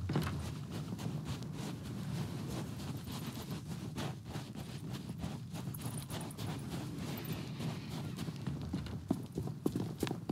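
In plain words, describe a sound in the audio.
Footsteps crunch on dirt and grass.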